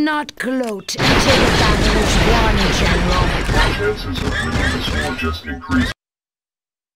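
Gunfire and explosions crackle loudly in a battle.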